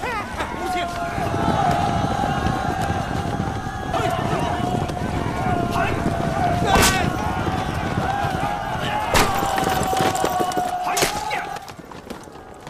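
Horses gallop over the ground.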